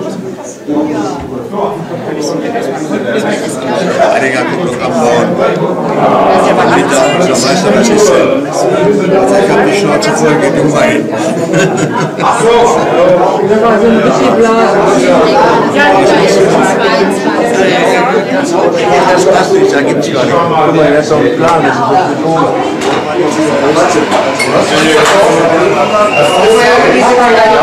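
Several adults chat and talk over one another close by.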